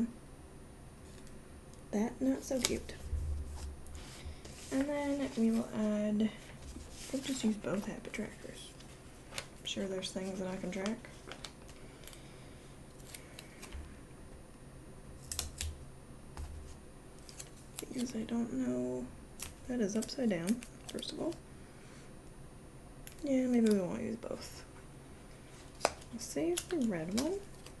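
Fingers rustle and smooth stiff paper.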